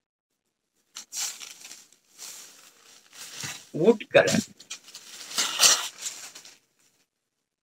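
Silk fabric rustles as it is unfolded by hand.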